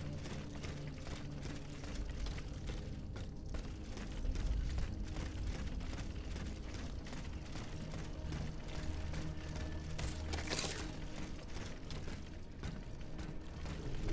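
Footsteps thud quickly on wooden boards.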